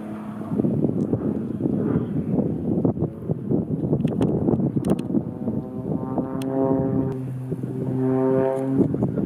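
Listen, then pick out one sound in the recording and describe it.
A small propeller plane's engine drones overhead.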